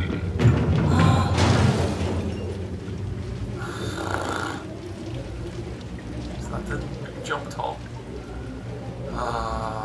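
Heavy rain pours down steadily.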